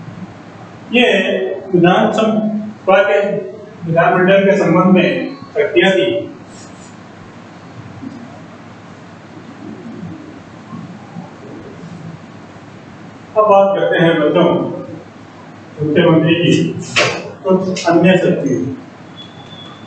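A man speaks clearly in short bursts, like a teacher explaining.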